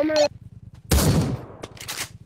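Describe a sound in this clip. A shotgun fires a single loud shot.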